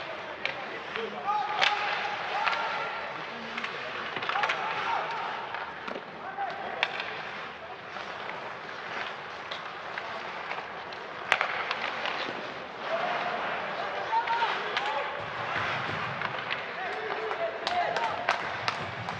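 Players shout to each other across an echoing empty rink.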